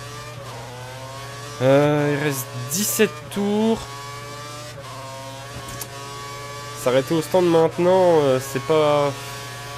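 A racing car engine hums steadily at high speed.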